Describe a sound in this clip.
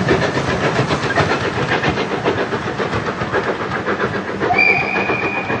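A steam train chuffs rhythmically as it pulls away into the distance.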